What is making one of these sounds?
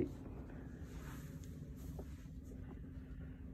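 A foot steps onto a bathroom scale with a soft thump.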